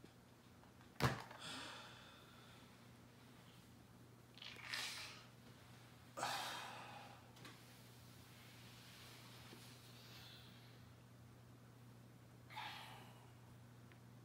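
A man sighs heavily.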